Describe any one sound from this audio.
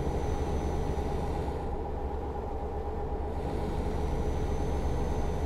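Tyres roll on the road with a steady rumble.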